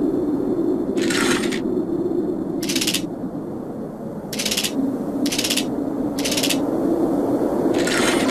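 A metal dial turns with short whooshing grinds.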